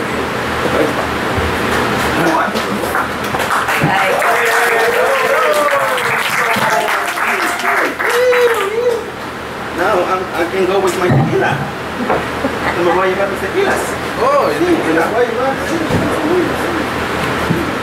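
A man speaks with animation to a small group, heard nearby in a room with some echo.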